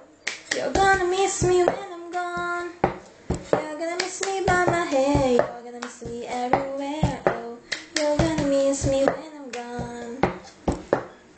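A young woman sings close by.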